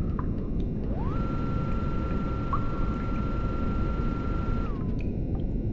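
A vending machine hums with a steady electric tone.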